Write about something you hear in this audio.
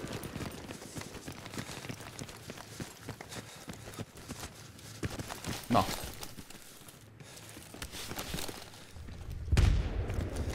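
A young man talks calmly close to a microphone.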